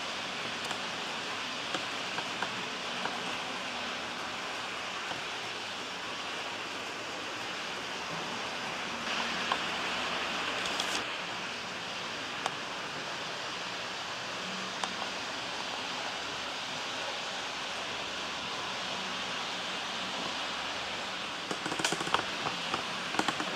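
A model train rumbles steadily along its track.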